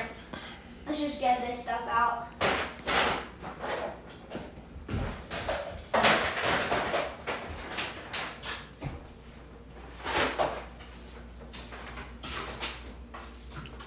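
Small objects knock and clack on a wooden table.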